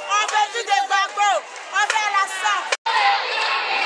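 Women sing and shout loudly close by.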